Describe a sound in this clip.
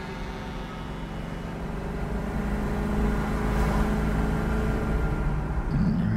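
An ambulance engine hums as it drives away down an echoing tunnel.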